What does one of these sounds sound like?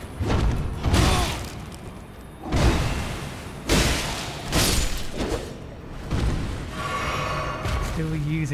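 Heavy weapon blows strike a monster with loud thuds and slashes.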